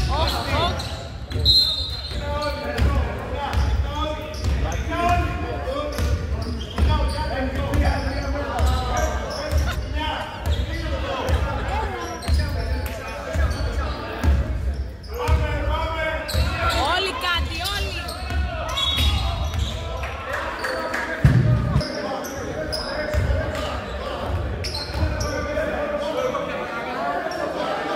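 A basketball bounces repeatedly on a wooden floor in an echoing hall.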